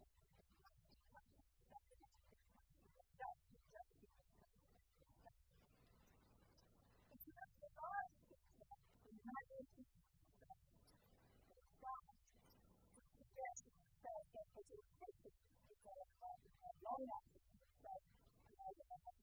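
A woman lectures calmly through a microphone.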